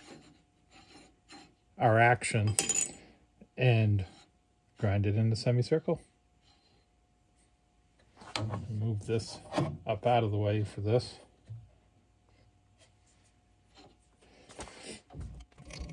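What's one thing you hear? Metal parts clink and scrape against a steel plate.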